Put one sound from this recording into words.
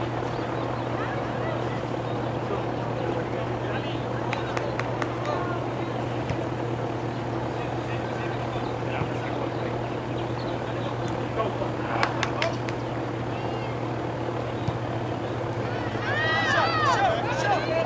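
Young women shout and call to each other across an open field in the distance.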